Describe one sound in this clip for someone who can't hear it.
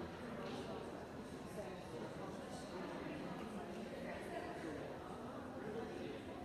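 A crowd of spectators chatters in a large echoing gym.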